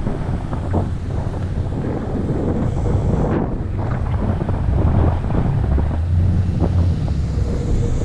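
Wind buffets a microphone while riding.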